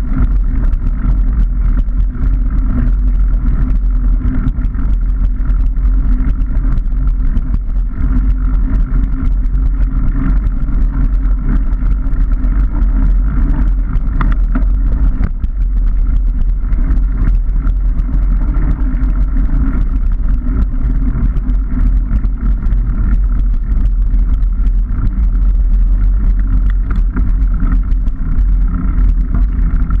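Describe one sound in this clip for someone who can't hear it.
Bicycle tyres roll and hum on a paved path.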